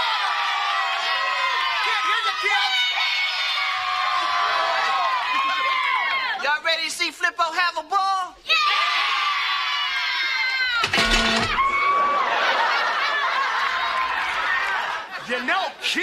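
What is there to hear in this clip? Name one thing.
A crowd of children and adults cheers and shouts loudly.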